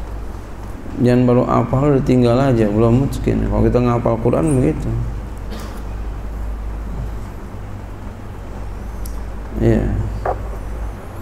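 A man speaks into a microphone in a slow, drawn-out chanting voice.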